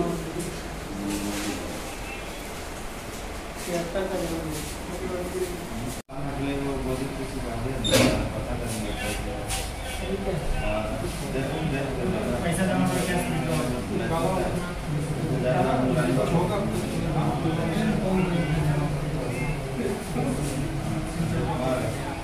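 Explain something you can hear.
Several men talk over one another in low voices close by.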